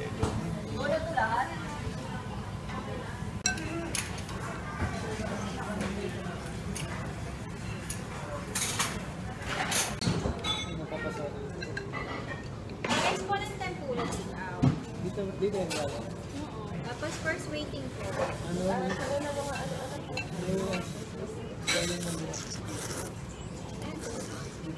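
Men and women chatter nearby in a busy room.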